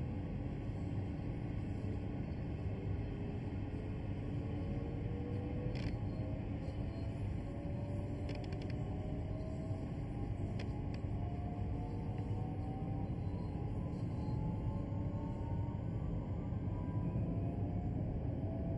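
An electric train rumbles steadily along the rails.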